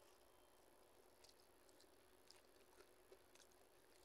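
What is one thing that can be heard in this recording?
A woman chews food.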